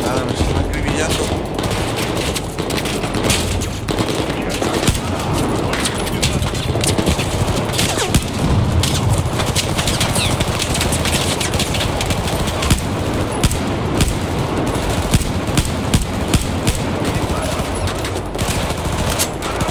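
Rifle shots crack and echo through a large hall.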